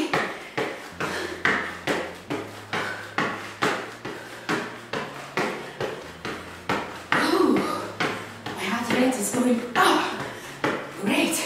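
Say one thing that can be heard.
Spring-loaded boots thump rhythmically on a hard floor as a person bounces.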